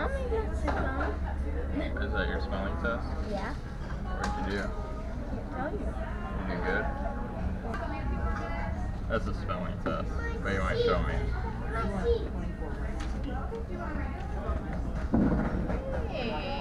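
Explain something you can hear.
Voices chatter nearby in a busy indoor room.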